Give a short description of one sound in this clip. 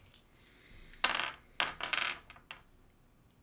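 Small plastic pieces clack softly on a tabletop.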